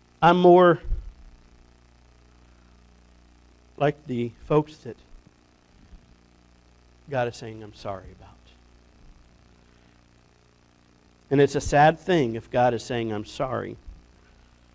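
A middle-aged man speaks calmly through a microphone, with pauses.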